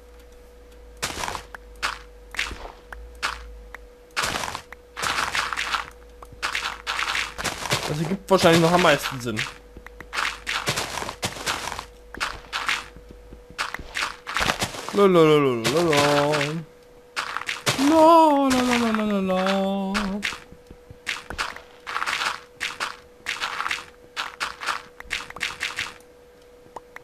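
Blocks of dirt and stone crunch as they are dug out again and again.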